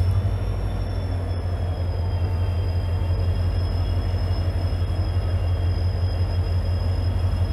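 A locomotive engine rumbles and throbs steadily up close.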